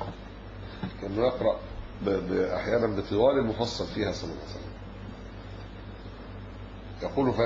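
An elderly man speaks calmly into a microphone, with pauses.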